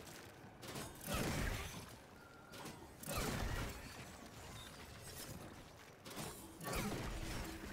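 A blade strikes with a crackling burst of energy.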